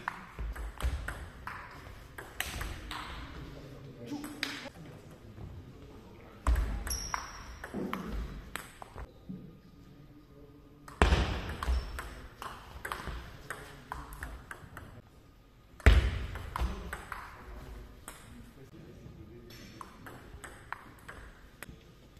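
A table tennis ball clicks quickly back and forth against paddles and a table, echoing in a large hall.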